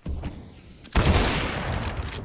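A rifle fires a loud shot at close range.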